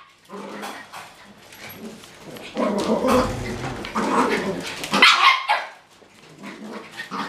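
Small dogs bark and yap excitedly close by.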